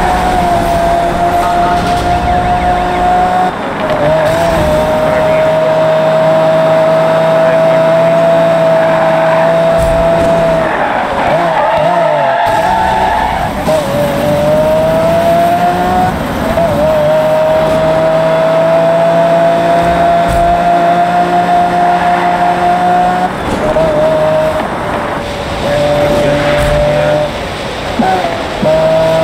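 A sports car engine roars at high speed, its pitch holding steady and dipping briefly as gears shift.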